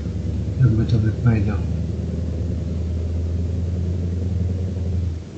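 A truck engine drones steadily while driving down a road.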